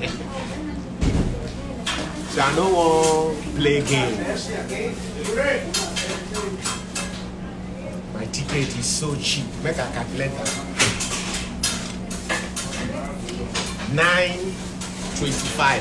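A young man talks casually close by, with animation.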